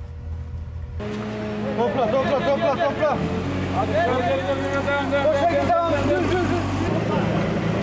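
Men call out to each other.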